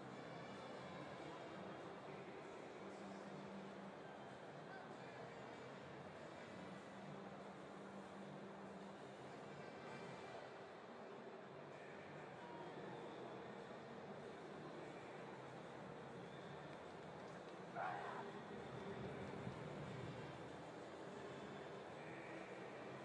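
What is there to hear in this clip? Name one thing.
A large crowd murmurs steadily in a big open stadium.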